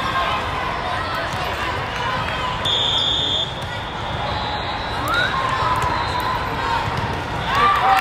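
Many voices chatter and shout in a large echoing hall.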